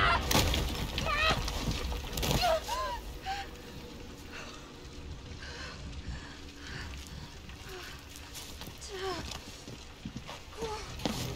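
A young woman groans and gasps in pain close by.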